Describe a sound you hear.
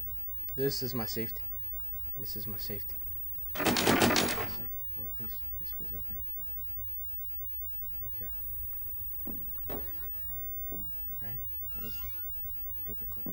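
A young man talks into a close microphone, with animation.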